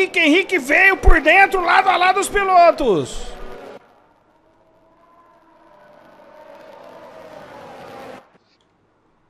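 Racing car engines whine loudly, rising and falling in pitch as cars pass close by.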